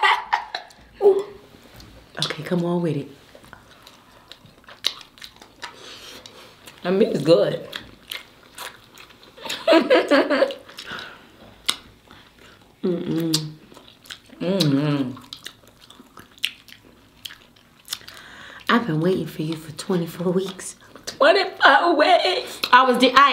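A second young woman laughs and talks close to a microphone.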